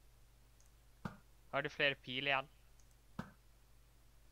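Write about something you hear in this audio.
A bow twangs as an arrow is shot.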